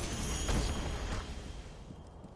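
A shimmering magical burst rings out and fades.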